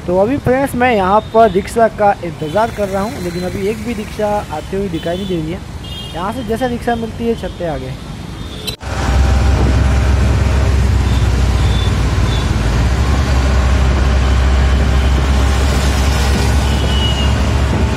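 Traffic passes by on a road.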